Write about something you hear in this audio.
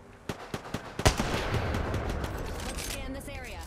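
A rifle fires a single loud shot that booms and rolls away.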